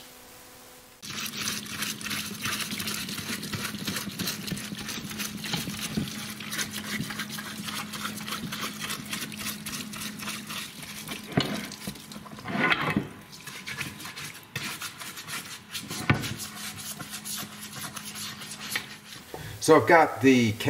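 A pump hums steadily.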